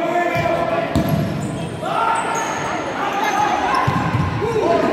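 A ball thuds as a player kicks it.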